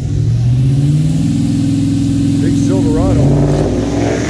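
A truck engine idles with a deep rumble close by.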